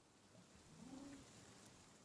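A tool swishes through plants.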